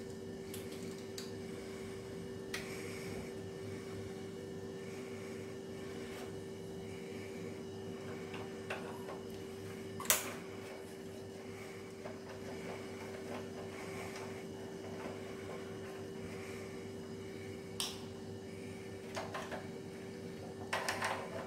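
A screwdriver clicks and scrapes against metal parts.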